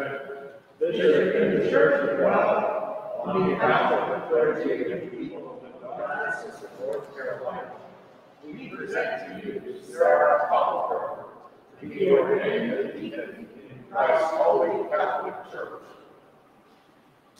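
A man speaks aloud in a large echoing hall, pausing between phrases.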